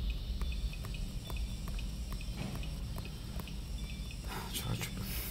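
Fingers tap quickly on a touchscreen.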